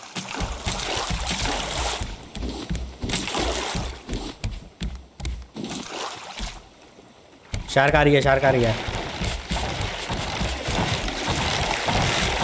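Ocean waves lap and splash against a raft.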